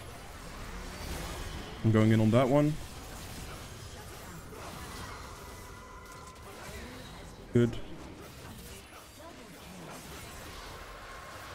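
Game spell effects whoosh and crackle in fast bursts.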